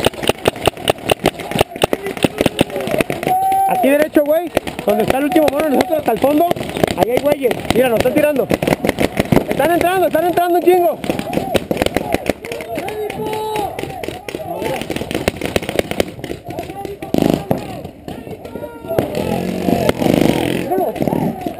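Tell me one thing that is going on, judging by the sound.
Airsoft guns fire in rapid snapping shots.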